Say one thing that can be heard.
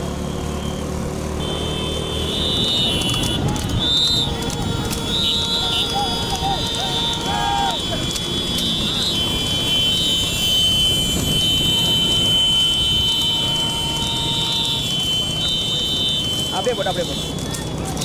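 Cart wheels rattle on the road.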